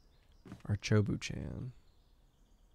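A man speaks briefly and close into a microphone.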